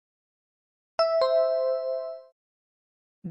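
A bright two-note chime rings out and fades.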